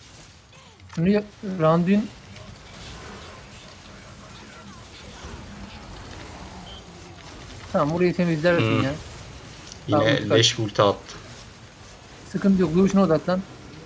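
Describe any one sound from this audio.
A young man talks through a headset microphone.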